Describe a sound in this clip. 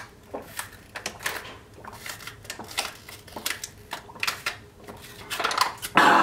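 A man gulps a drink loudly.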